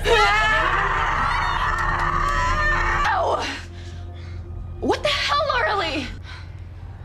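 A young woman sobs and wails nearby.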